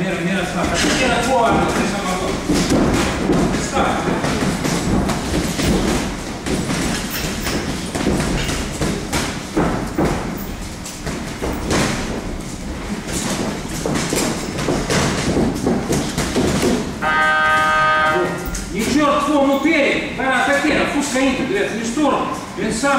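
Gloved punches smack against pads in quick bursts.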